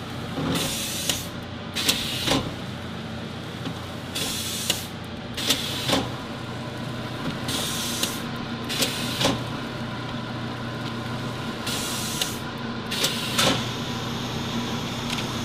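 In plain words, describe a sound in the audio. A packaging machine hums steadily.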